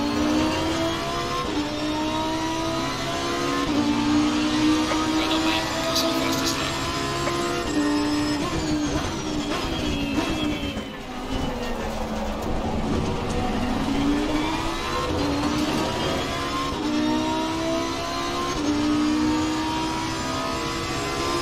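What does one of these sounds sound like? A racing car engine roars loudly, climbing in pitch through gear changes and dropping under braking.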